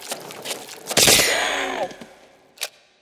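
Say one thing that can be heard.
An electric ray gun fires with a loud crackling zap.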